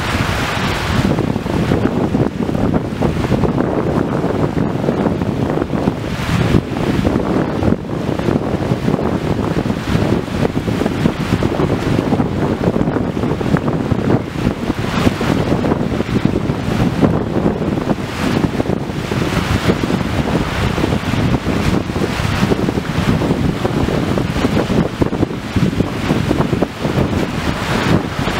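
Wind gusts hard into the microphone outdoors.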